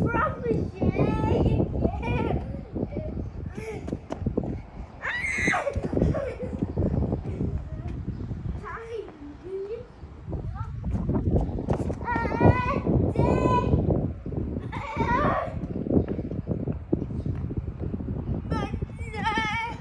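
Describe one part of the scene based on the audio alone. A young child squeals and shouts with excitement close by.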